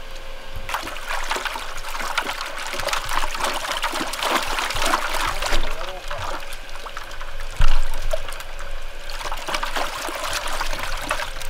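Hands slosh and splash fish around in a bucket of water.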